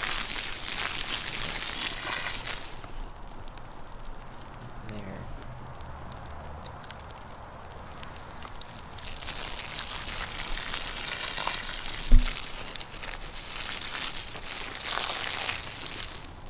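A fire crackles and roars steadily.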